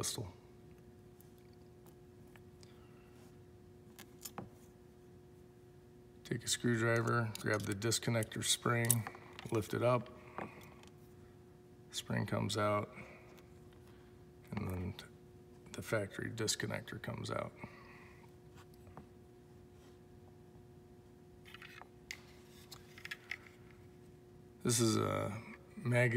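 Small plastic and metal parts click and tap against each other.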